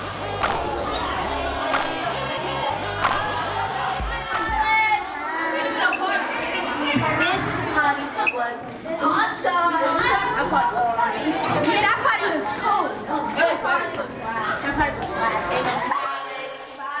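A crowd of children chatter and talk loudly in an echoing room.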